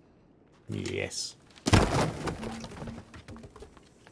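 A heavy wooden plank falls and crashes down with a loud thud.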